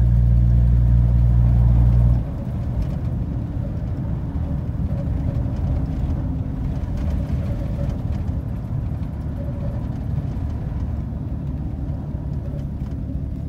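Tyres crunch and rumble over a snowy road.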